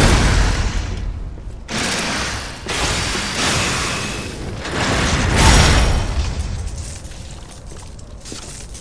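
Blades clash and strike with sharp metallic hits.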